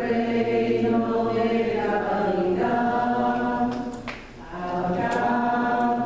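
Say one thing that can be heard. A choir of men and women sings a slow hymn in a large, echoing space.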